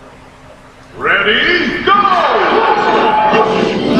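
Video game music and sound effects play loudly through a television speaker.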